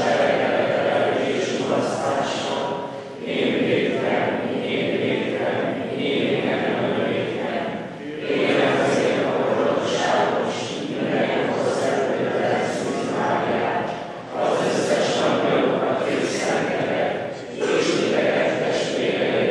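A large crowd of men and women sings together, echoing through a large hall.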